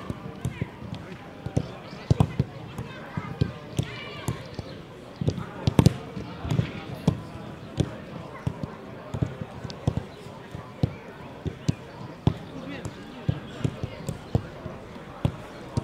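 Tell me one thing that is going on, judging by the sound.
A football is kicked across a pitch with dull thuds, now and then.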